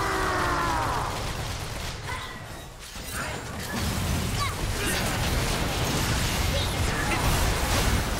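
Magic blasts and spell effects crackle and whoosh during a fast battle.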